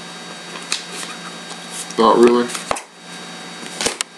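A playing card is set down softly on a tabletop.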